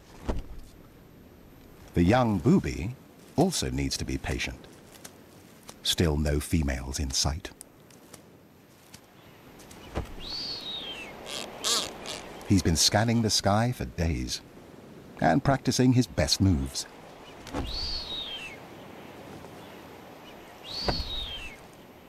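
A large bird flaps its wings.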